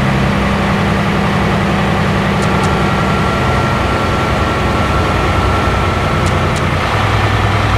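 Tyres roll with a steady rush on the road.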